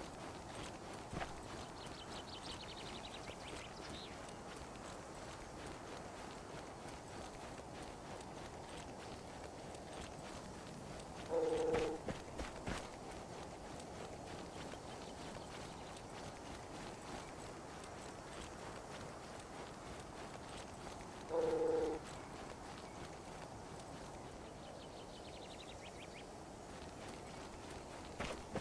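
Footsteps swish through tall grass at a steady run.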